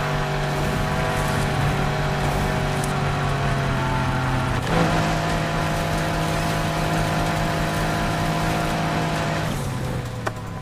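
A sports car engine roars loudly at high revs.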